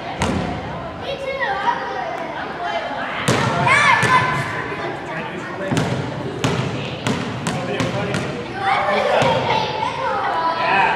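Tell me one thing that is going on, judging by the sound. Children shout and chatter in a large echoing hall.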